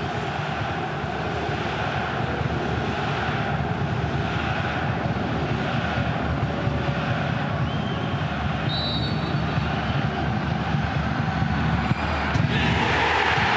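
A large stadium crowd chants and murmurs steadily.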